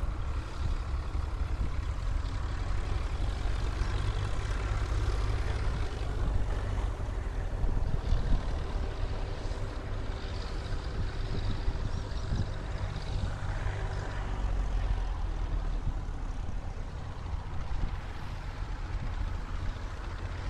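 Tractor engines rumble along a road a short way off.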